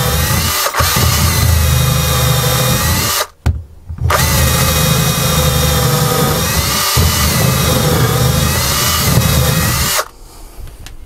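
A cordless drill whirs loudly as it bores through wood.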